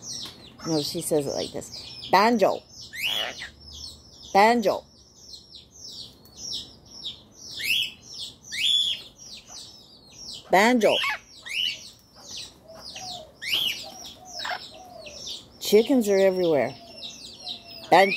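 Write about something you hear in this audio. A parrot squawks loudly and harshly, close by.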